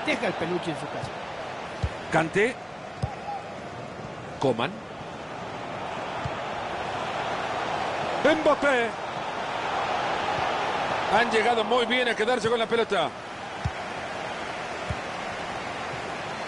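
A stadium crowd roars steadily.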